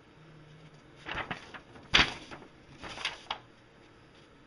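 Paper rustles and crackles.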